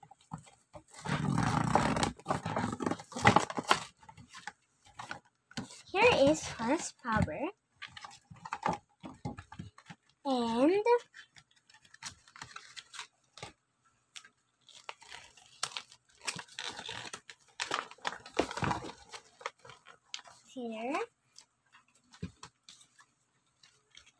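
Stiff plastic packaging crinkles and crackles as hands pull it open.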